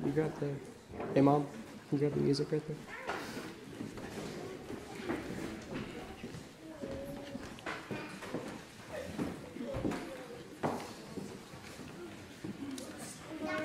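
A man speaks calmly and clearly to an audience in an echoing hall.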